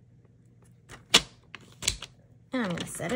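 A paper trimmer blade slides along and cuts paper.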